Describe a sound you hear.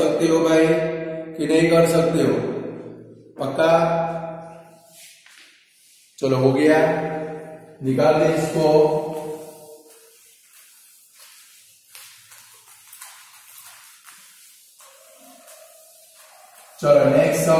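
A man speaks calmly and clearly into a nearby microphone, explaining.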